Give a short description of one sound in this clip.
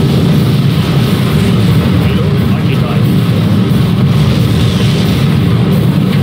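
Airships drone steadily with deep rumbling engines.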